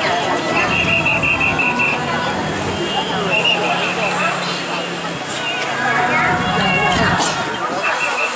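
Vehicle engines hum nearby as traffic passes slowly.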